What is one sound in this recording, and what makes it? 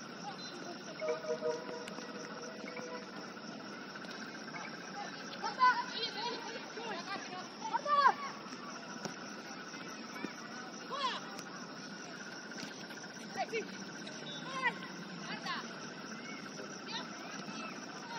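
Young women shout and call to each other across a sports field outdoors.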